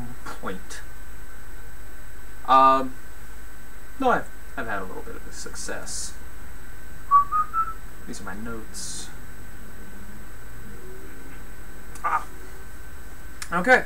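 A young man speaks to himself in short, uneasy bursts close by.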